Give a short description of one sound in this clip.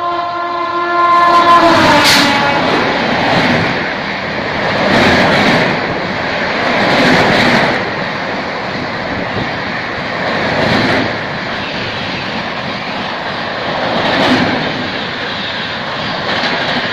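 A fast train rushes past with a loud roar and rhythmic clatter of wheels.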